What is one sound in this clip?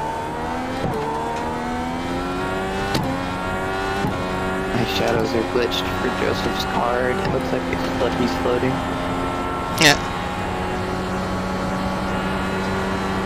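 A racing car engine revs high, climbing in pitch and dropping back at each gear change.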